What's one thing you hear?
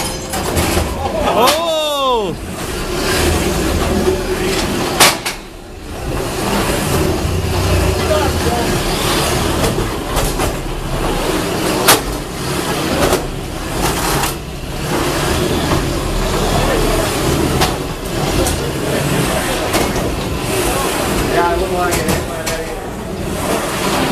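Small robot machines whir and scrape across a floor.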